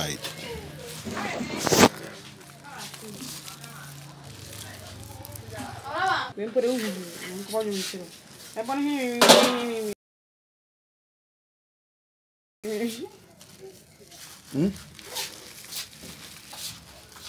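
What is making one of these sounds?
A plastic bag crinkles and rustles as hands handle it.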